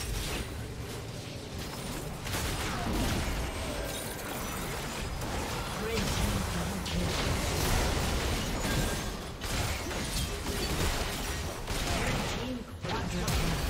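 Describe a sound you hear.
Game spell effects whoosh and crackle during a fast fight.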